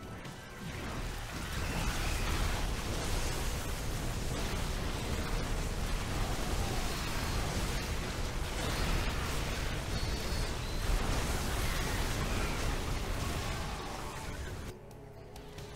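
Game weapons zap and blast in a busy, crackling battle.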